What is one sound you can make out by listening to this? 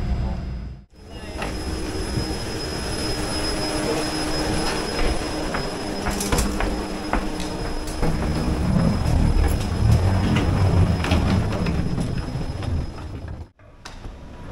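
Footsteps tread along a hollow walkway.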